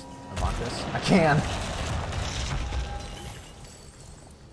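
A magical burst whooshes and shimmers, then fades away.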